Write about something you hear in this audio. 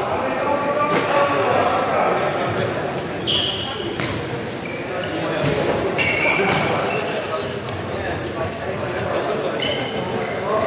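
A ball is kicked and thuds, echoing in a large hall.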